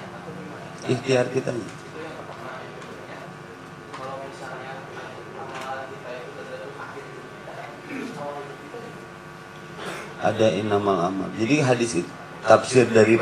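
A man speaks calmly into a microphone, with a slight echo.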